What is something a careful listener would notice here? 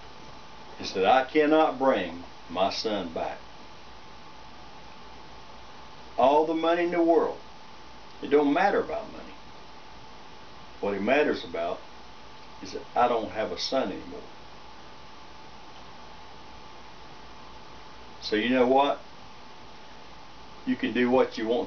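An older man speaks calmly nearby, in short phrases with pauses.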